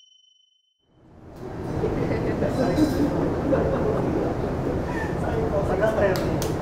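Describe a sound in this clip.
Men talk and laugh excitedly nearby.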